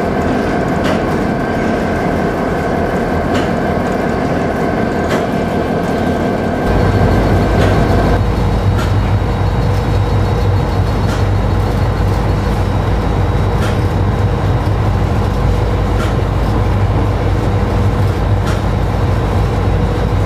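A diesel locomotive engine rumbles and drones steadily close by.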